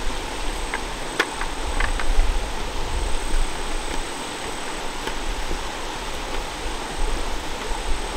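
Boots crunch on stones and gravel.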